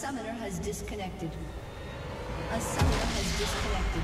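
Fantasy battle effects crackle and clash.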